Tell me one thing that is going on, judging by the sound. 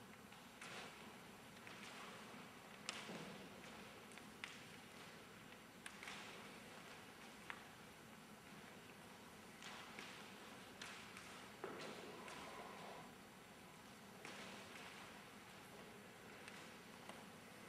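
A man speaks in a large echoing hall.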